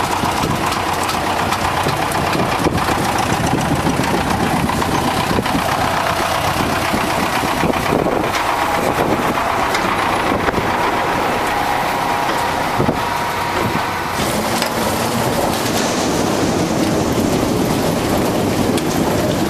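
A harvester engine roars loudly and steadily.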